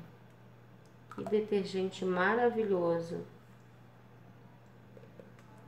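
Water pours from a jug and splashes into a tub of water.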